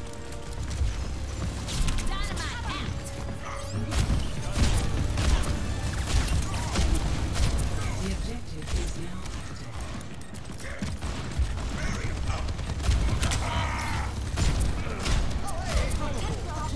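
A lever-action rifle fires sharp shots.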